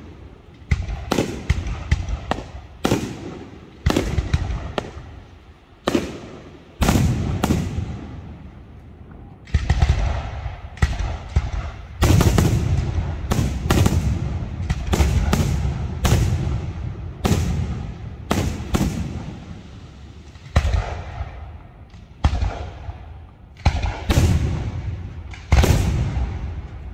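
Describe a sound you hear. Fireworks burst with loud booming bangs that echo and rumble away.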